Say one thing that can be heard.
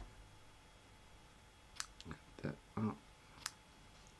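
Scissors snip.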